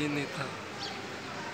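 A young man talks softly close to the microphone.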